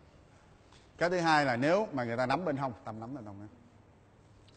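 A man speaks clearly and with emphasis, close by.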